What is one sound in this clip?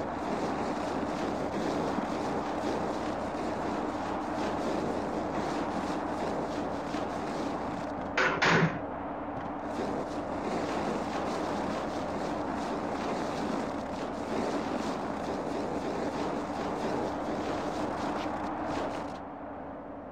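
Wind and rain rush steadily outdoors.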